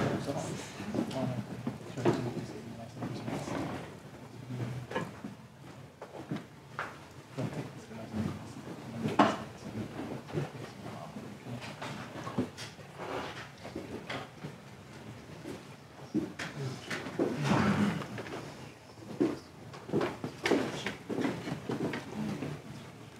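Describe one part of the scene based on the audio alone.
A man speaks calmly to an audience through a microphone in a large echoing room.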